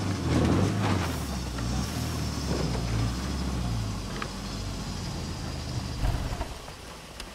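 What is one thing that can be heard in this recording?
A car engine rumbles as the car drives slowly.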